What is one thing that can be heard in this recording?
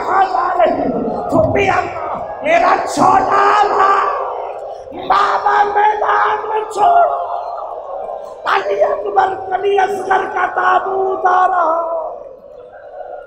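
A middle-aged man speaks passionately into a microphone, his voice rising to shouts.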